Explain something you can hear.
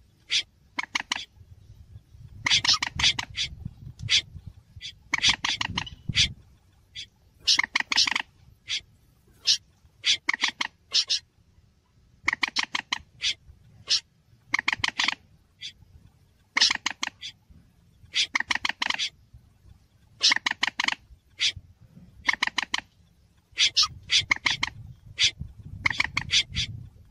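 Water birds call in short, repeated bursts of sharp, rapid clicking notes.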